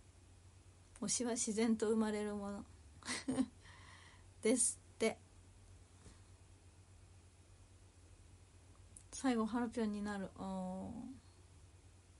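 A young woman speaks softly and close by.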